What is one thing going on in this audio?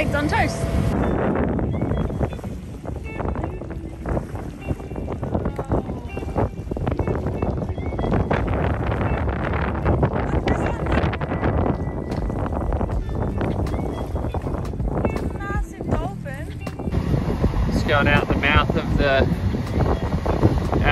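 Small waves splash and lap against a boat's hull.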